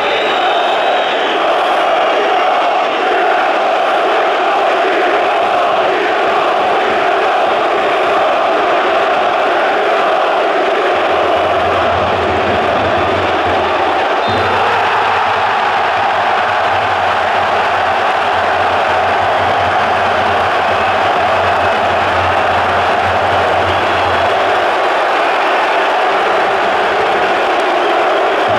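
A large stadium crowd chants and sings loudly in unison outdoors.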